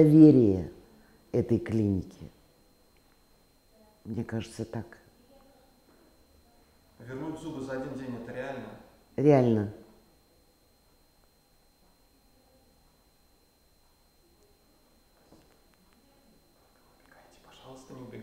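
An elderly woman speaks calmly into a clip-on microphone, close by, with pauses.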